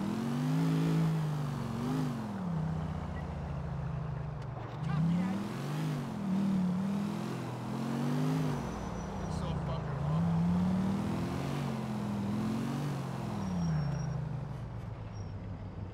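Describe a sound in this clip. A truck engine hums and revs up and down as it drives.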